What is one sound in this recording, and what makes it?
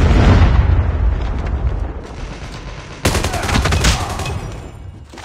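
Gunshots crack loudly in bursts.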